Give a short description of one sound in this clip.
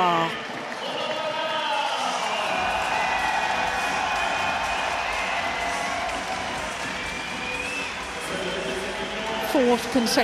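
A crowd applauds and cheers in a large echoing hall.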